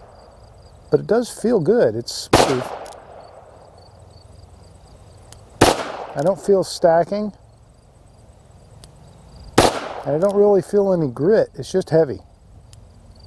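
A man speaks in short bursts close by.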